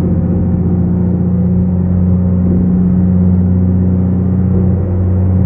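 A diesel semi-truck engine drones at cruising speed, heard from inside the cab.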